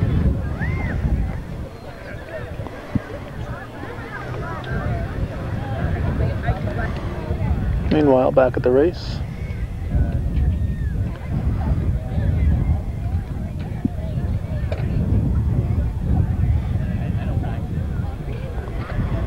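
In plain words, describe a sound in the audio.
Several people talk faintly nearby.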